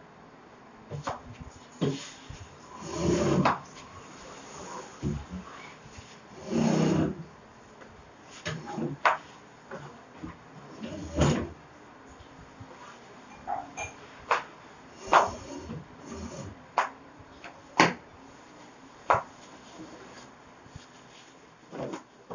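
Objects knock and thump against a table.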